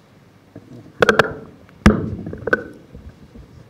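Knocks and thumps sound close to a microphone.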